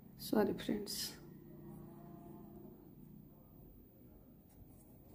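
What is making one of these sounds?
Knitting needles tap and click softly as yarn is worked.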